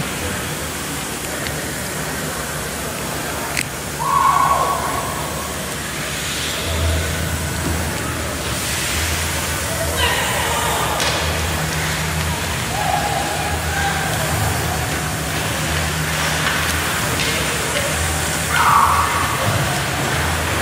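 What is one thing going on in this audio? Ice skaters scrape and glide on ice in a large echoing arena.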